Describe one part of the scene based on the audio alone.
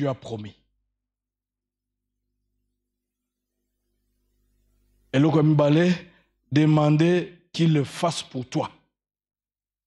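A man speaks with emphasis into a microphone, with long pauses.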